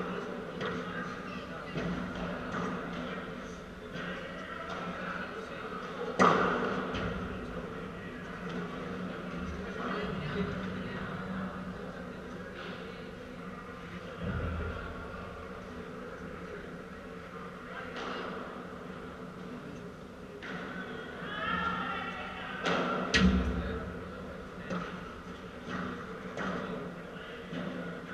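Sneakers scuff and squeak on the court.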